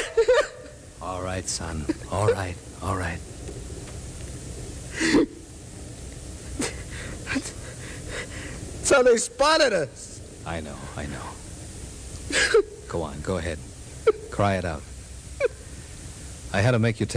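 A man reads out lines with feeling through an old radio microphone.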